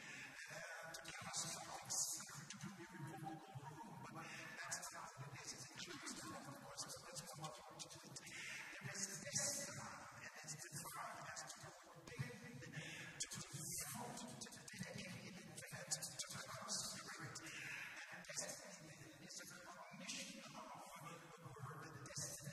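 An older man preaches with animation through a handheld microphone.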